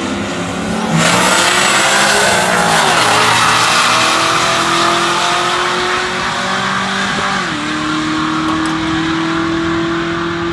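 Race cars launch with a thunderous roar and speed off into the distance.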